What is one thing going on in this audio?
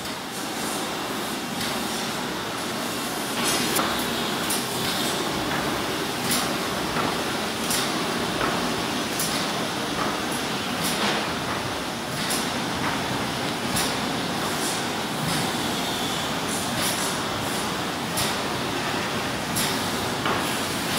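A large machine rumbles and whirs steadily.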